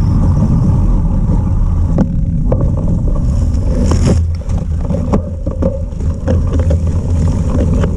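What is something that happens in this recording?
Tyres roll and crunch over a wet, bumpy dirt path.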